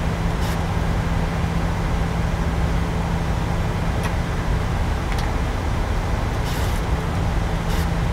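Jet engines roar with a steady, low rumble.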